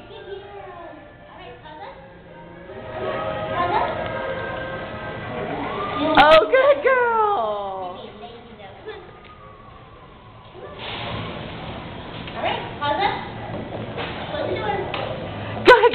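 A woman talks to a dog in a high, encouraging voice, close by.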